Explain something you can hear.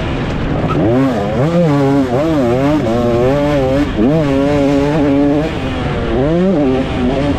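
A dirt bike engine revs up and down loudly, close by.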